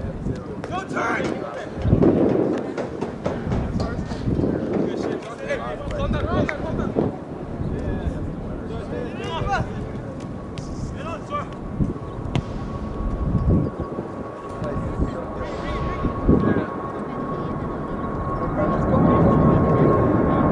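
Young players shout to each other in the distance across an open field.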